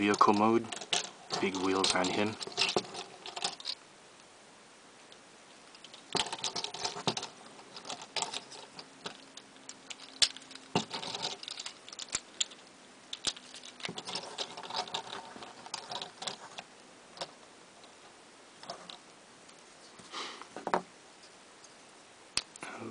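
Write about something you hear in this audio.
Plastic toy parts click and snap as they are twisted into place.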